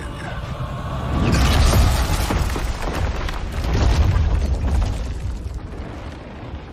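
Thunder rumbles loudly and slowly fades.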